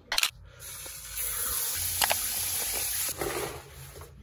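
Water sprays from a shower head and splashes.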